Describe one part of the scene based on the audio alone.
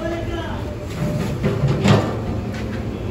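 A heavy sack rustles and thumps as it is lifted.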